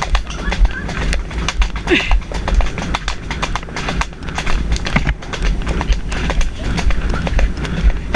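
A horse's hooves clop quickly on a dirt path.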